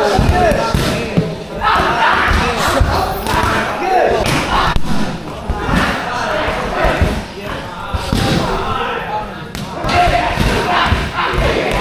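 Kicks and punches thud against pads.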